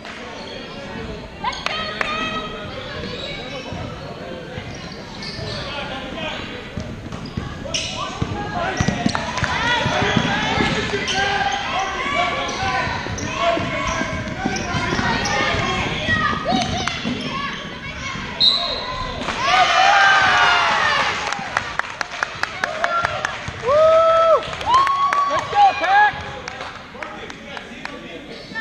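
A crowd of spectators talks and cheers in a large echoing hall.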